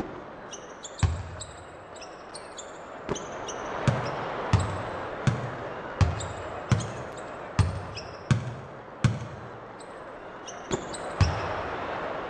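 A basketball bounces on a hardwood court in a steady rhythm.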